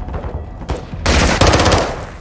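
A gun fires a rapid burst.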